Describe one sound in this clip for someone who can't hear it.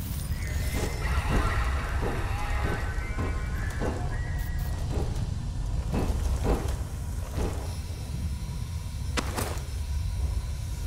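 Heavy footsteps clang on a metal floor.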